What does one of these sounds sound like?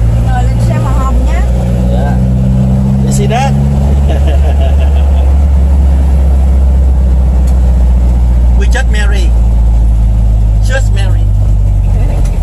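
A middle-aged man talks close by.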